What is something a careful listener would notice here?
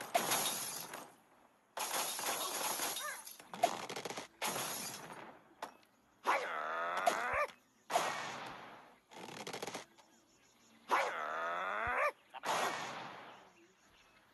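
Blocks crash and shatter in bursts of noise.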